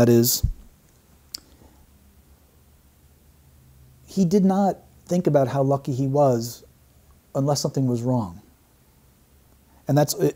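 A middle-aged man speaks calmly and slowly into a close microphone.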